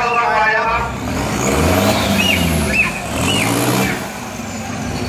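A van engine revs up and down nearby.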